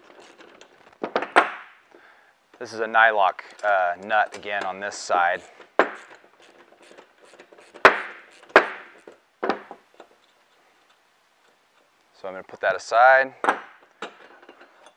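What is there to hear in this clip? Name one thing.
A man speaks calmly, close by.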